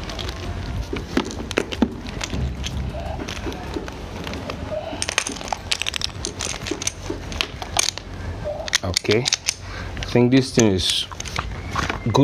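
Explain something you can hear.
A rubber hose rustles and scrapes on concrete as it is uncoiled.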